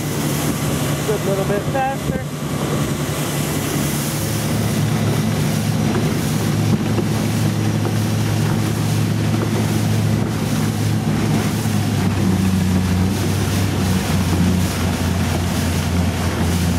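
A boat engine drones steadily at speed.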